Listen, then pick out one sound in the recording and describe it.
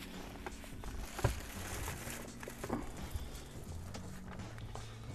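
Fingers tap on drum pads with soft knocks.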